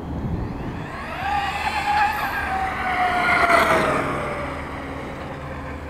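An electric RC monster truck whines as it speeds across asphalt.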